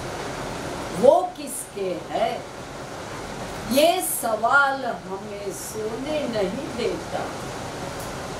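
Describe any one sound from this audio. A middle-aged woman sings expressively close to a microphone.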